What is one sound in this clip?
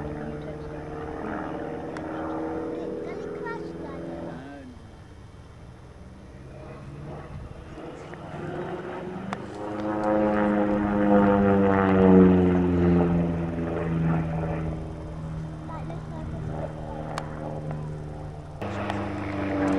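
A model airplane engine buzzes overhead, rising and falling in pitch as it passes.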